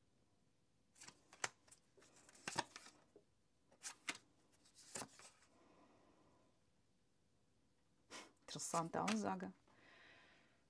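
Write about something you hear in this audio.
Playing cards shuffle and snap together in hands.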